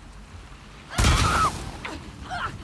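A gun fires with a loud bang.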